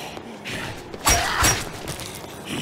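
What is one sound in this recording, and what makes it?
A heavy blow thuds as a man strikes a zombie.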